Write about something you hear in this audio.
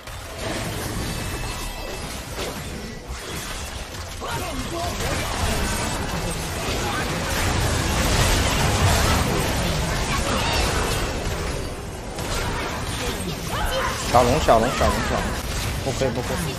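Game spells and hits crackle and boom.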